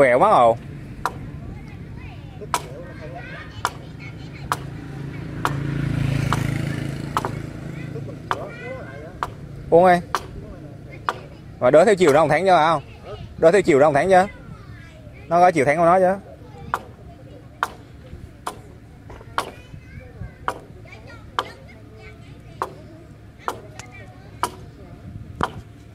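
A blade chops at bamboo in sharp, regular knocks.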